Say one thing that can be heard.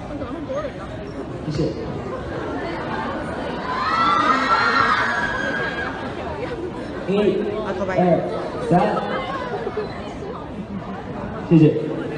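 A young man sings into a microphone over loudspeakers in an echoing hall.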